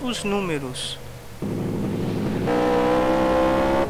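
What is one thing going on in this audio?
Tyres screech as a car spins on dirt.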